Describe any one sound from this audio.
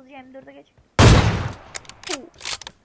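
A sniper rifle fires a single loud shot that echoes away.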